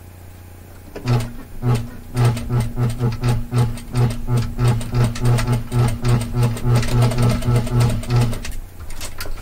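A sewing machine runs with a fast, steady rattle of stitching.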